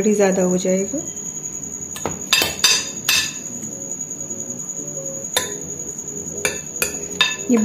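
A metal spoon scrapes and clinks against a glass bowl.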